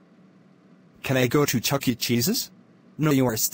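A young man asks a question through a microphone.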